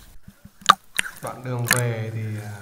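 Water splashes and sloshes right against the microphone.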